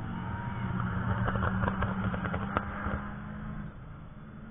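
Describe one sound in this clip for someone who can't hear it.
A car passes close by with a loud engine roar.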